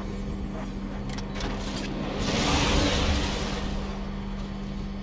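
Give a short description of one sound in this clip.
Jet thrusters blast with a loud rushing whoosh.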